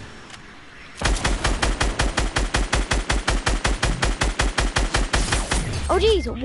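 An automatic rifle fires in a rapid, steady burst.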